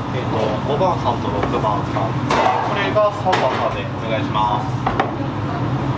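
Ceramic bowls knock down onto a counter.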